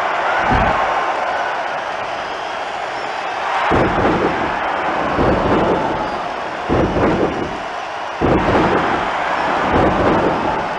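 A large crowd cheers loudly throughout.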